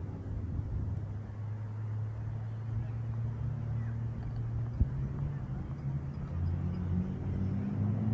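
A motorised scooter hums steadily along a path.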